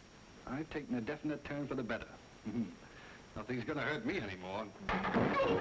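A man speaks in a firm voice, up close.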